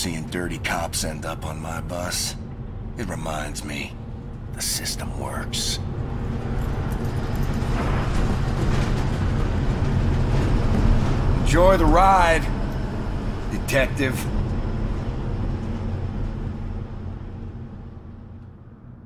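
A bus engine drones with a low rumble.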